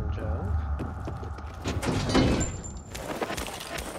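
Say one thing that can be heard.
A metal cabinet door creaks open.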